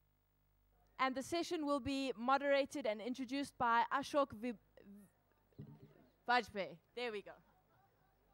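A young woman speaks into a microphone, heard through loudspeakers in a large space.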